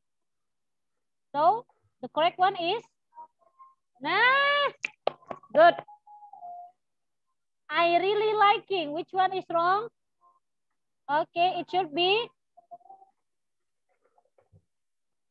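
A young child speaks softly through an online call.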